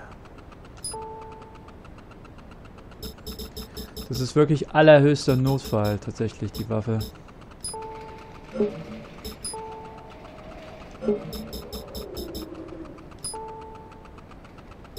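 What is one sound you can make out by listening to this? A game menu beeps with short electronic tones.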